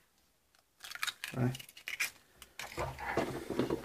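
An egg cracks against the rim of a bowl.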